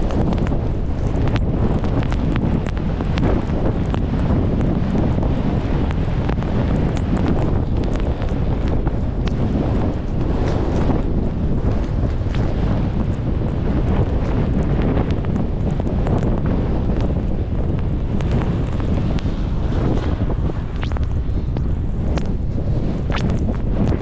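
Skis hiss and swish through deep powder snow.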